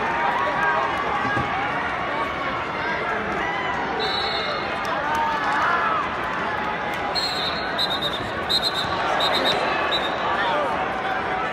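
A large crowd murmurs and shouts in a large echoing arena.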